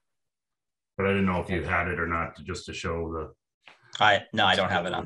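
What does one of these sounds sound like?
An older man speaks calmly over an online call.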